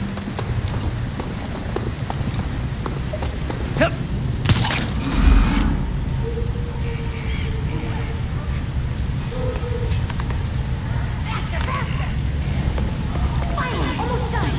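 Footsteps patter quickly across a rooftop.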